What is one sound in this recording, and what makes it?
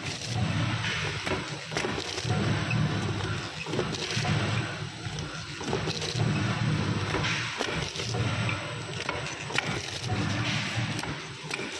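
A machine clacks and clicks at a regular pace.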